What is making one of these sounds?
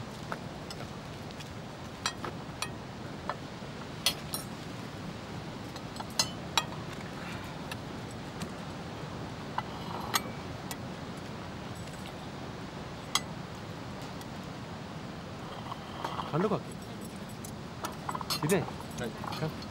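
Cutlery and plates clink on a table.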